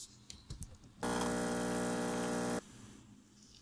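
An espresso machine pump buzzes steadily.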